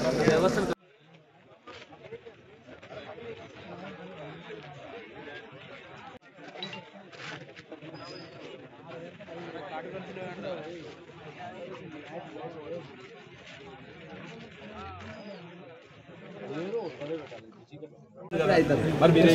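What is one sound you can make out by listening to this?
A crowd of men talks and murmurs outdoors.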